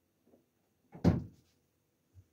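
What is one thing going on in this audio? A refrigerator door shuts with a dull thud.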